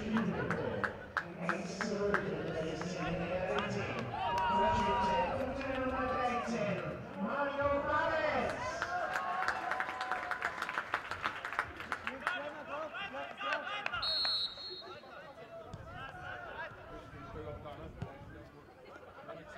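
Young men shout to each other across an outdoor football pitch.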